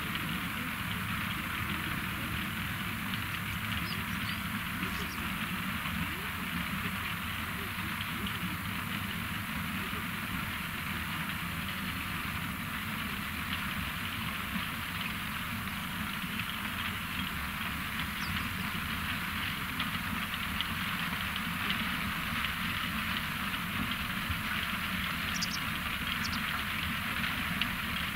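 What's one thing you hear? A large harvesting machine's diesel engine rumbles steadily nearby.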